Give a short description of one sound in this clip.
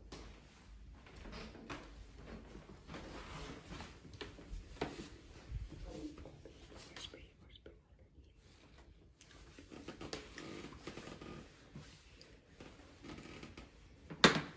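A boy whispers close by.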